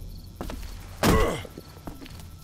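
A wooden board knocks hard against a door.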